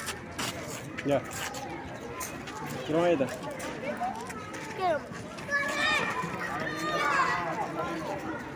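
A young child talks and squeals close by.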